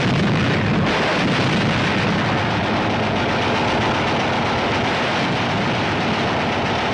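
Propeller plane engines roar as an aircraft flies low overhead.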